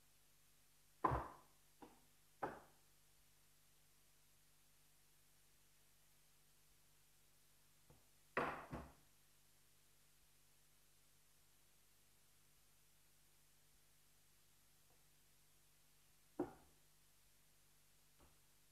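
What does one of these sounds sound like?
Objects knock and thump now and then in an echoing hall.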